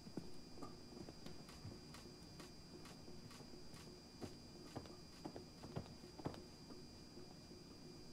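Footsteps tread steadily across a hard floor.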